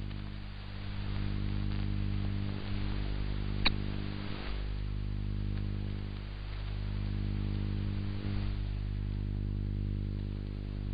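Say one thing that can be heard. Faint radio static hisses.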